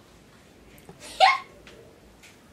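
A young woman exclaims loudly with excitement.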